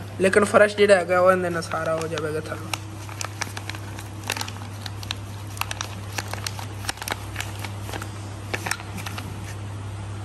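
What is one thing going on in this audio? A plastic bag crinkles and rustles in a hand.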